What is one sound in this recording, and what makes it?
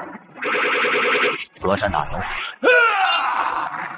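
A magical blast crackles and booms.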